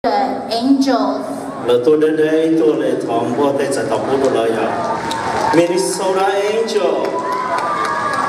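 A crowd in a large hall cheers and shouts.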